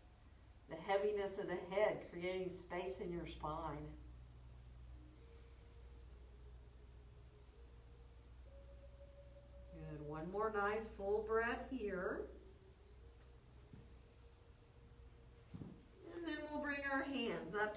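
A woman speaks calmly and slowly, close by, in short phrases.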